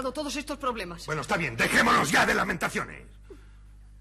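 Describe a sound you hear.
A middle-aged man speaks forcefully, close by.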